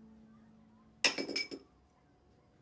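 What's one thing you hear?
Cutlery clinks against a plate.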